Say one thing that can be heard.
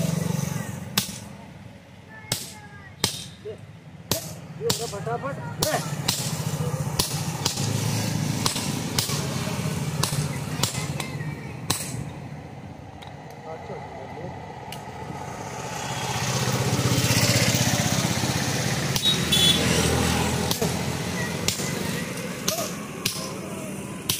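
A sledgehammer strikes a punch into hot metal on an anvil with sharp ringing clangs.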